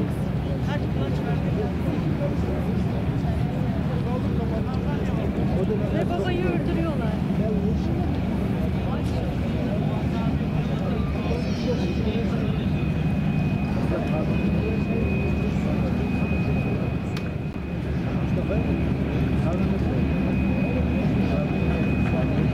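Choppy waves slap and splash.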